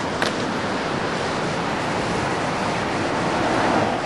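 Waves break on a sandy beach some way off.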